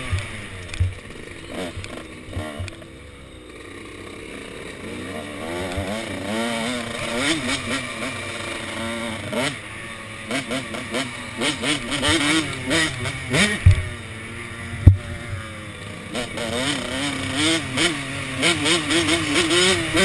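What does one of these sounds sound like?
A second dirt bike engine buzzes ahead.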